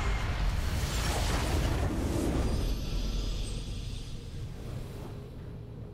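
A triumphant game fanfare swells.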